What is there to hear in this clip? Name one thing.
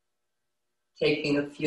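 A woman begins to speak calmly and close into a microphone.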